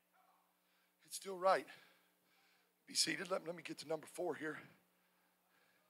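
A man speaks with feeling through a microphone in a large echoing hall.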